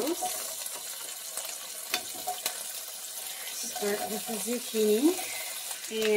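Sliced vegetables slide off a cutting board into a frying pan.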